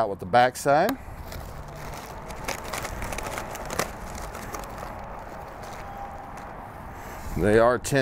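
Aluminium foil crinkles.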